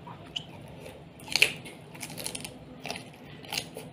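A man slurps noodles close by.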